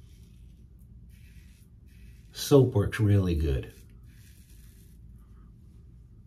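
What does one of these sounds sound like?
A safety razor scrapes across lathered stubble.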